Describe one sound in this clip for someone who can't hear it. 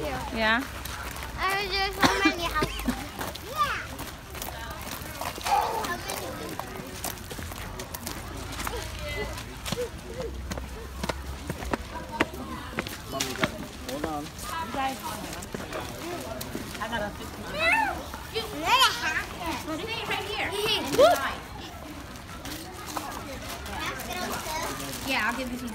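Young children chatter and shout excitedly nearby.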